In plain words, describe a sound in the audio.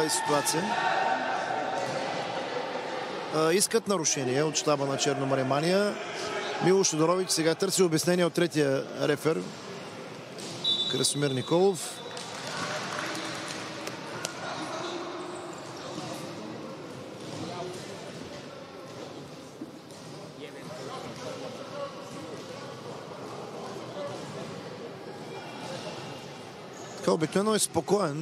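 Spectators murmur softly nearby.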